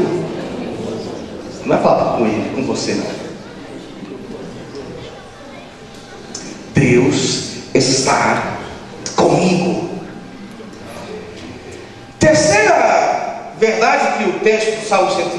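A man speaks with animation into a microphone, heard through loudspeakers in an echoing room.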